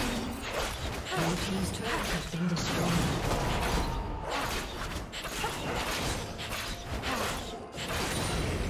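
Spell effects whoosh and crackle in quick bursts.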